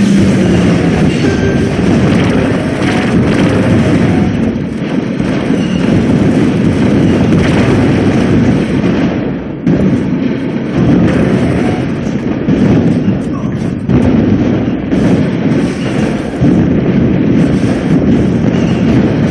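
Explosions boom in a video game battle.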